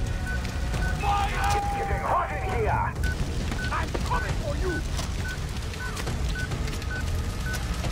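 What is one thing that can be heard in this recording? Flames roar and crackle loudly.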